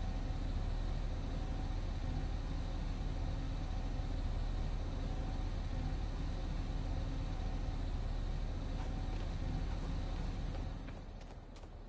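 A large machine hums and rumbles steadily.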